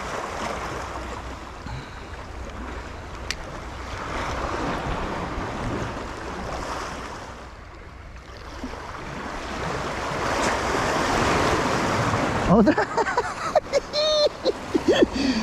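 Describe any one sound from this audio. Wind rushes outdoors.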